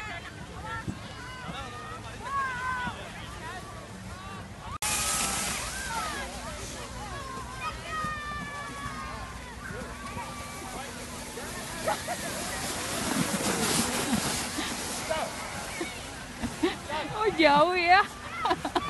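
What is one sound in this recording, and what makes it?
Children shout and laugh at a distance outdoors.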